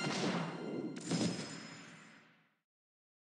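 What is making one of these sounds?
A whoosh sweeps past.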